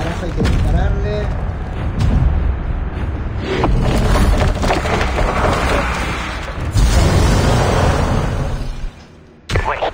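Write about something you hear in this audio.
A huge creature growls with a low, rumbling roar.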